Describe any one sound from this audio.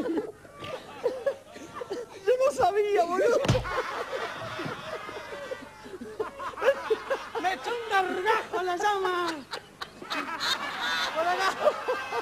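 A man shouts and laughs with animation.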